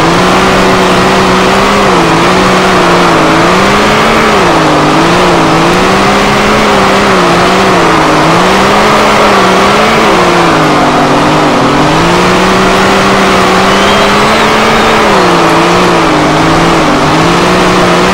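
A race car engine roars loudly, rising and falling in pitch as it shifts and revs.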